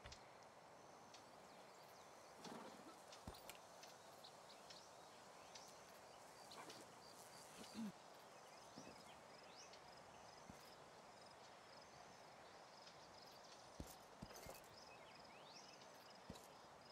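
Horses shuffle their hooves softly.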